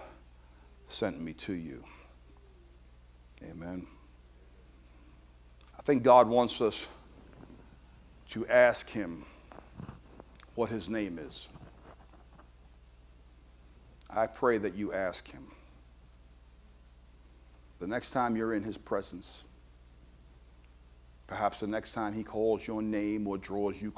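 A man speaks with feeling into a microphone, in short bursts with pauses, in a reverberant hall.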